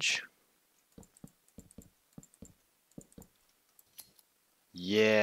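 Wooden blocks knock softly as they are placed.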